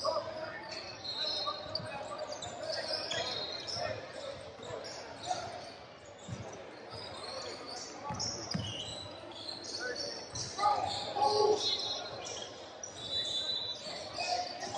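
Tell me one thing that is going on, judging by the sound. Sneakers squeak sharply on the court.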